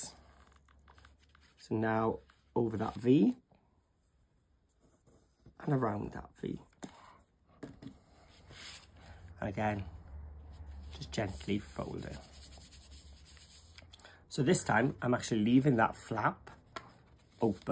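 Fabric rustles softly as hands fold and smooth it.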